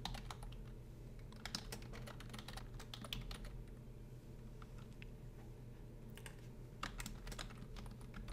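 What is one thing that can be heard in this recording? Keys clack rapidly on a keyboard in short bursts.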